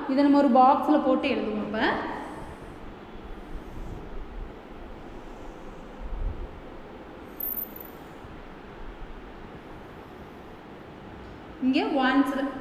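A woman speaks clearly in a slow, sing-song voice.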